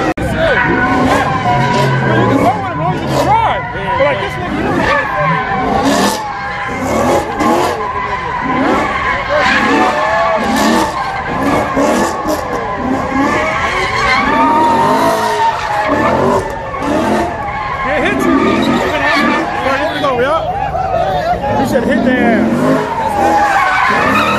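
A car engine revs hard.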